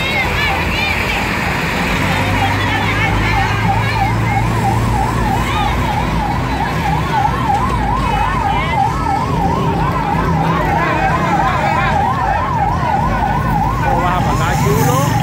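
A crowd of people talk and shout outdoors.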